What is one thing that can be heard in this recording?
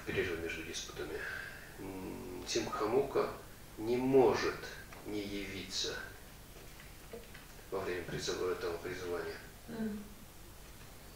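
A middle-aged man reads aloud calmly into a headset microphone.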